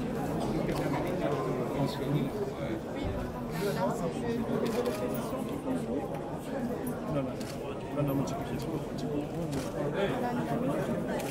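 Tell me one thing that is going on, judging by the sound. A middle-aged man talks calmly up close.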